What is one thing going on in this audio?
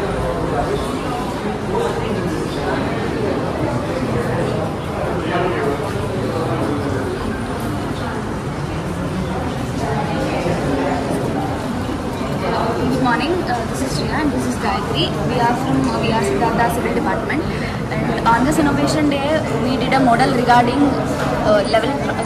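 A crowd of young people chatters all around in an echoing indoor hall.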